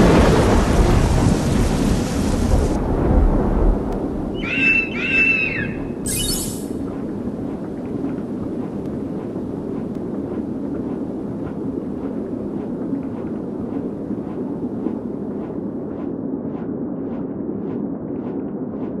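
Wind rushes steadily.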